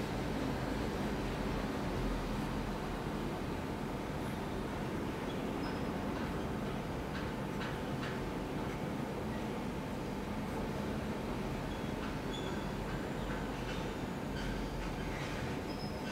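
A pen nib scratches softly across paper.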